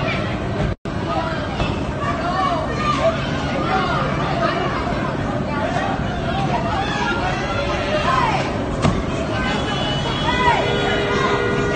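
Several men shout angrily at each other nearby, outdoors.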